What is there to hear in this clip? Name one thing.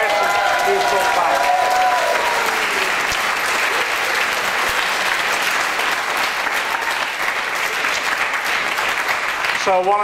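An older man speaks through a microphone in a large echoing hall.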